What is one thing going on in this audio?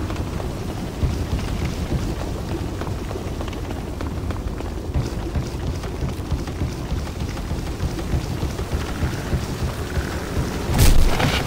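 Armored footsteps thump quickly on wooden boards and steps.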